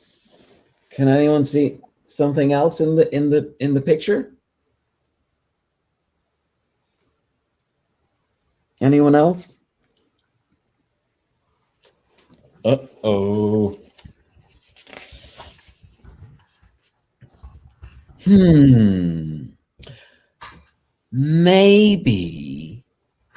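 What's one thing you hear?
A man reads aloud expressively, close to a microphone.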